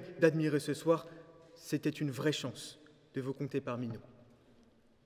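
A young man speaks calmly through a microphone.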